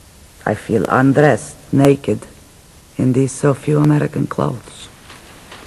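A man speaks calmly and close by.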